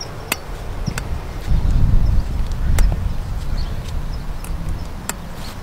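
Plastic poles click into place on a frame.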